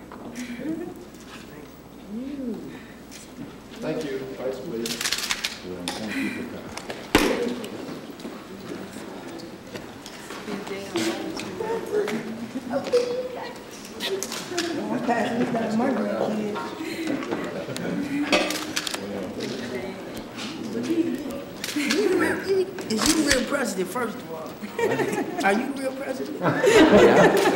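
An elderly man talks warmly, close by.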